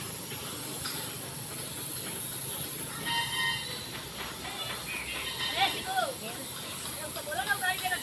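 A spray gun hisses in short bursts.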